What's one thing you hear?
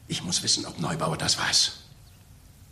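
An older man speaks urgently, close by.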